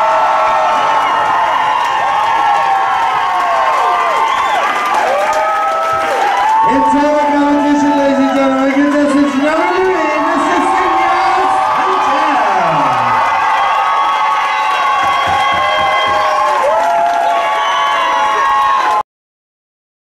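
Loud pop music with a singing voice plays over loudspeakers.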